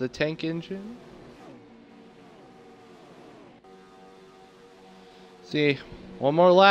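Racing car engines roar and drone as cars speed past.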